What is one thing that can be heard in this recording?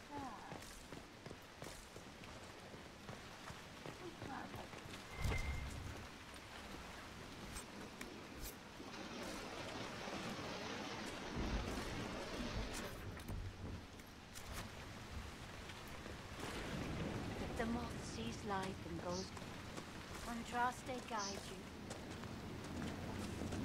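Footsteps crunch on stone and grass.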